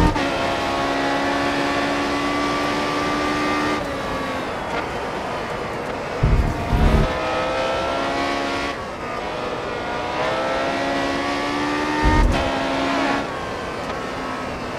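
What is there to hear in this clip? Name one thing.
A racing car engine screams at high revs, dropping in pitch with each gear change and rising again.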